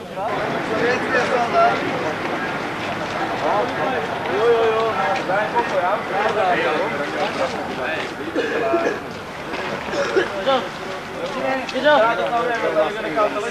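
Several men talk with animation nearby, outdoors.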